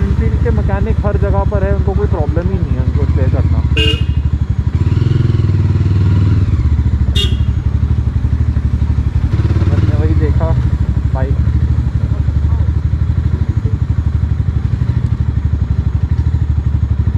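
A motorbike engine putters steadily up close.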